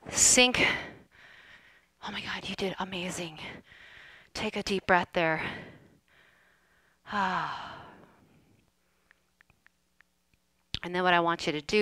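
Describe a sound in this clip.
A woman speaks energetically through a headset microphone, close by.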